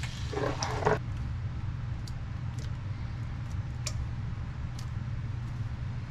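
Thick sauce bubbles and pops softly in a hot pan.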